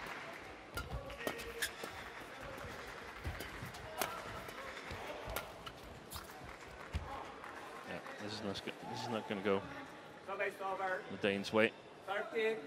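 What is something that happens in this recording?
A crowd murmurs in a large hall.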